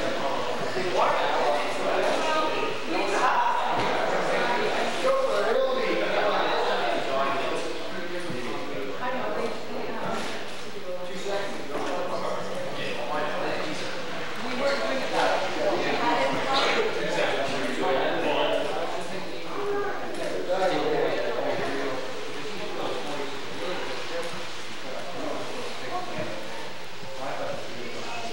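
A woman talks calmly to a small group.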